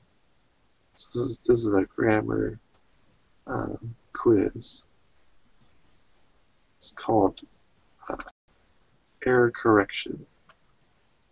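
A young man speaks in short bursts through an online call.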